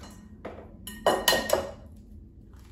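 An egg cracks against a glass bowl.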